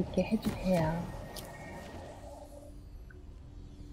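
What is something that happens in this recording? Soft interface clicks sound as menu items are selected.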